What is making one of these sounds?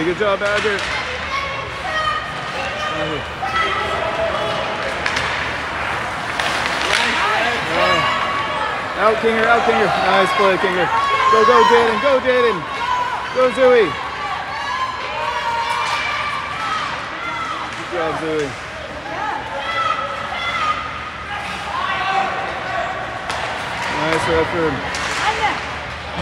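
Spectators shout and cheer nearby in a large echoing rink.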